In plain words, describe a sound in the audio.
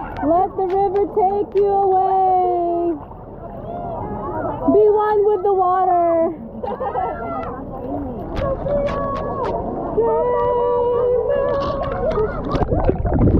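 A young girl talks and squeals excitedly close by.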